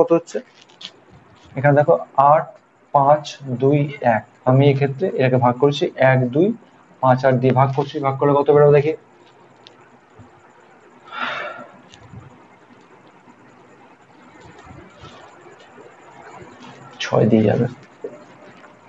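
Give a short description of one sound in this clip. A young man speaks calmly and clearly, explaining, close by.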